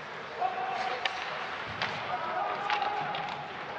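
Sticks clack against a puck on the ice.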